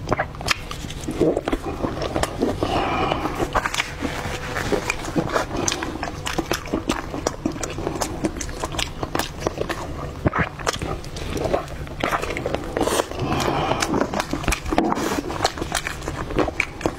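A woman chews and slurps loudly and wetly close to a microphone.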